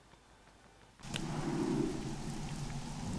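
Rain falls steadily outdoors in the wind.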